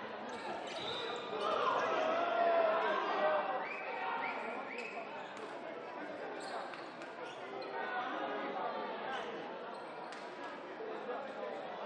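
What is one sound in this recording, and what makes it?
A ball bounces on a wooden floor.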